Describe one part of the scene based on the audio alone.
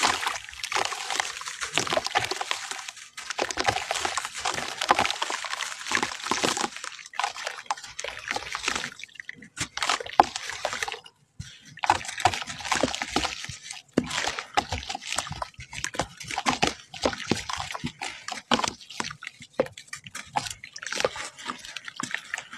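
Clay powder pours and patters into water.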